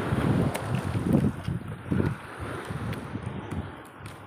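Water laps and splashes against the side of a small boat.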